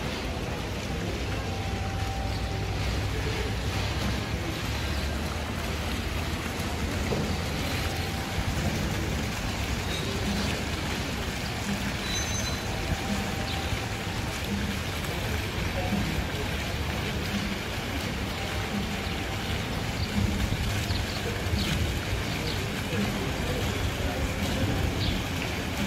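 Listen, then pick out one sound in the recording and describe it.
Small fountain jets splash steadily into a pool.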